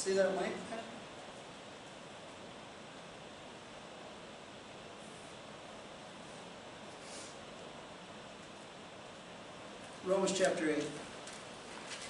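An older man speaks calmly into a nearby microphone.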